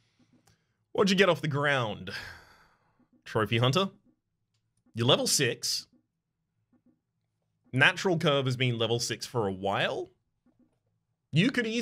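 A young man talks casually and with animation into a close microphone, in short bursts with pauses.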